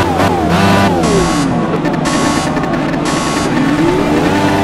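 Short electronic beeps sound one after another.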